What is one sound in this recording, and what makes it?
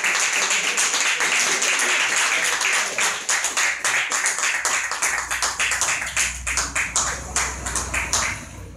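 A crowd claps steadily throughout.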